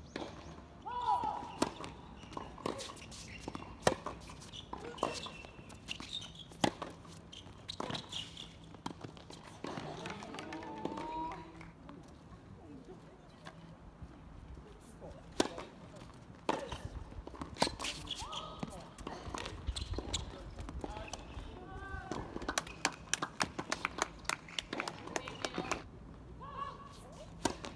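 Tennis balls are struck sharply with rackets, back and forth.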